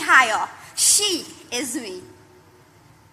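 A young woman speaks with animation into a microphone, heard through loudspeakers in a large hall.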